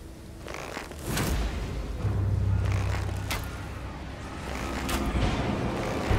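A sword swings and strikes with heavy slashing blows.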